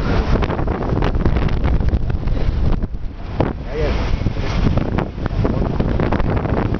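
Wind rushes loudly over a microphone outdoors.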